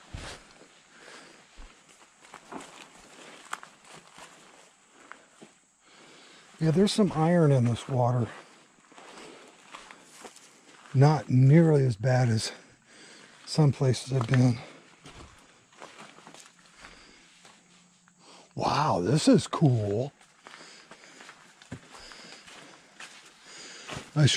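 Footsteps crunch on leaves and twigs on a forest floor.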